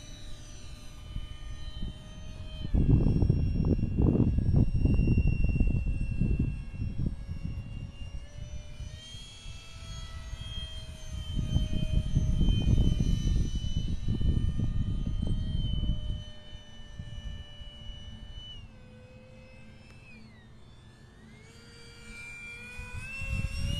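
A small model plane's motor whines overhead, its pitch sliding up and down as it turns.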